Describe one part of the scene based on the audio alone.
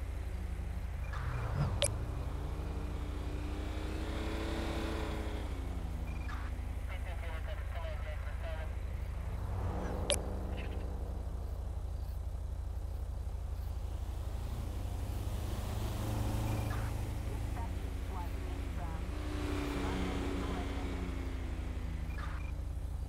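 Trucks and cars drive past one after another, their engines rising and fading.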